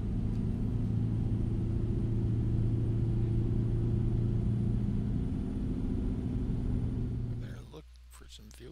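A truck engine drones steadily, then cuts out.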